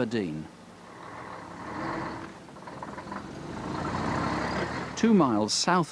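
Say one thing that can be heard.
A truck engine rumbles.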